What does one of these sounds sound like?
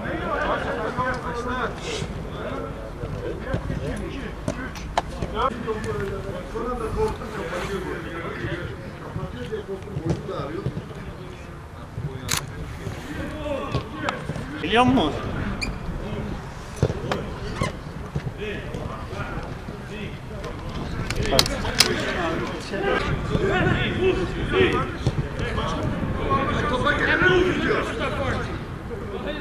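Men call out and talk across an open outdoor field.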